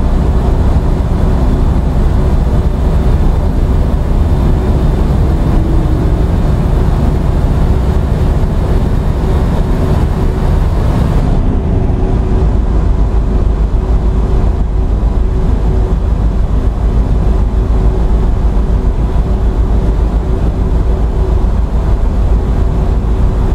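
Tyres roll with a steady rush on the road.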